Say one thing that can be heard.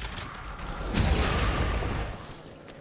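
A heavy blast roars and rumbles.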